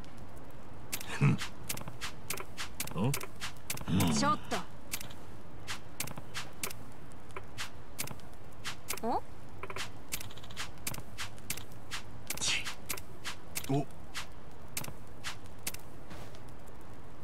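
Laptop keys click in a quick, uneven run.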